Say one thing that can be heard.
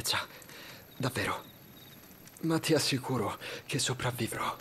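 A young man speaks weakly and strained, close by.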